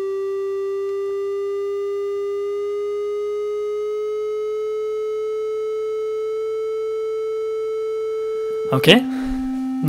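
A steady electronic test tone slowly rises in pitch.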